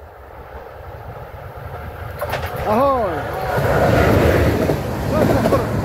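A passenger train approaches and roars past close by.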